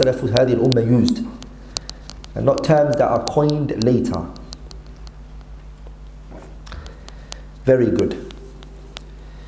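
A young man speaks slowly and steadily into a microphone.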